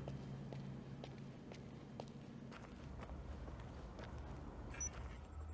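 Footsteps tread steadily on a hard floor and then on snow.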